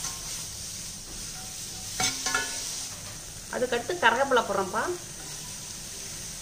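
Greens sizzle in a hot pan.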